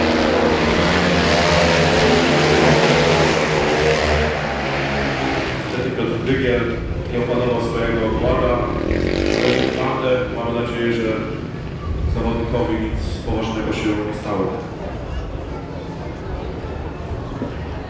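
Racing quad bike engines roar and whine loudly close by.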